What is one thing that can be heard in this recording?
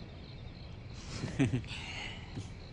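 A young woman laughs softly.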